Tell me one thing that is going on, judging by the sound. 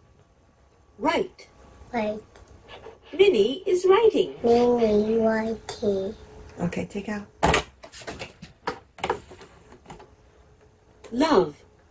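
A small child speaks in short bursts, close by.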